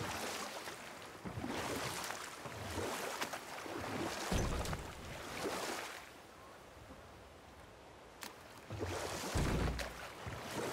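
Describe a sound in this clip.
An oar dips and splashes through water in slow, repeated strokes.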